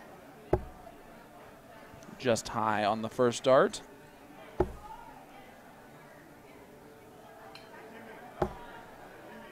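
Darts thud into a board one after another.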